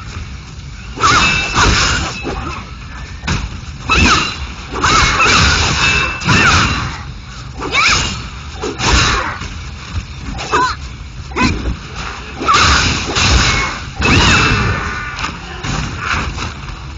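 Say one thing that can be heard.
Metal blades slash and clash in a fast fight.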